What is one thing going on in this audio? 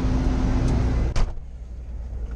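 A cab door slams shut.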